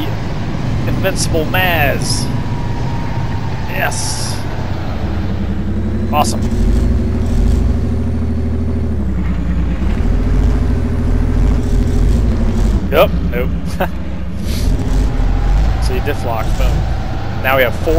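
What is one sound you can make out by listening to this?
A heavy truck engine roars and labours, rising and falling in pitch.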